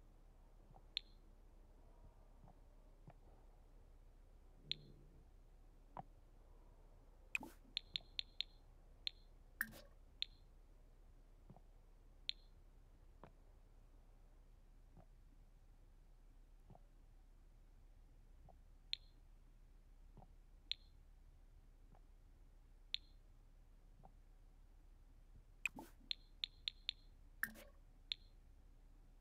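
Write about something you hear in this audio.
Short, bright game menu clicks sound now and then, sometimes in quick bursts.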